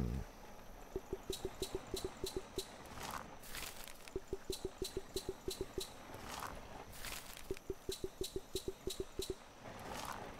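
Soft quick ticks sound in rapid bursts.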